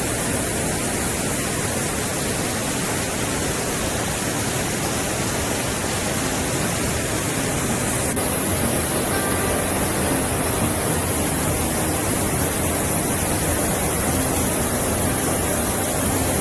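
A waterfall roars steadily, close by.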